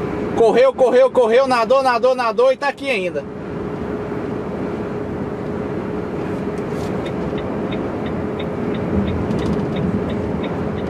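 Tyres rumble steadily on the road.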